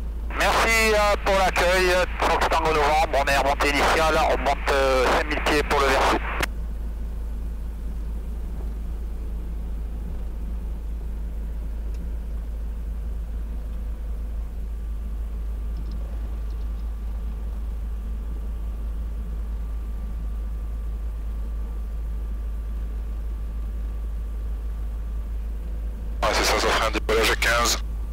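A man speaks over a headset intercom.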